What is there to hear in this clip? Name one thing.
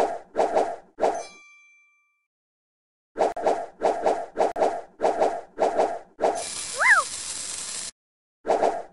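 Cheerful game chimes and pops play as pieces match and burst.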